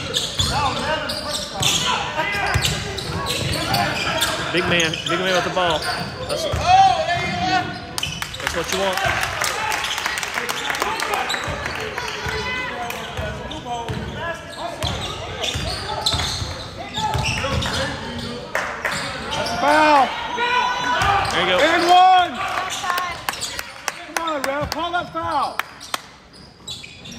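Spectators in a crowd talk and call out in an echoing gym.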